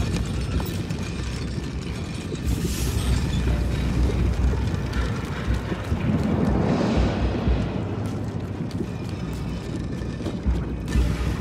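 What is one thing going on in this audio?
Soft footsteps creep across a stone floor.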